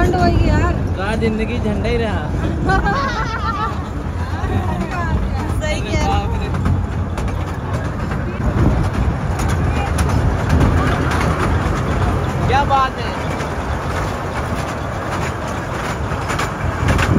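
An engine rumbles steadily.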